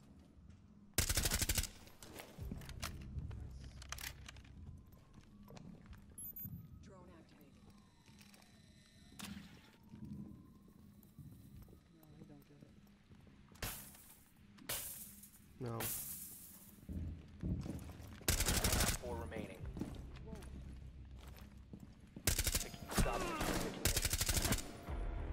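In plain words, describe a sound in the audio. Bursts of rapid gunfire ring out.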